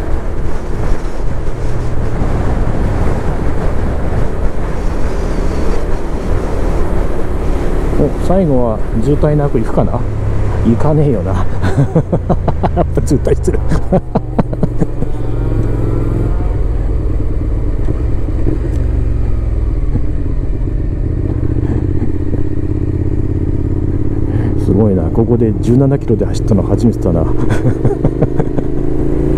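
A motorcycle engine roars and changes pitch as the rider shifts gears.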